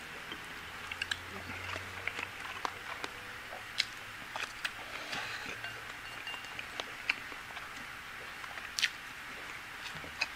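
A man chews and slurps food.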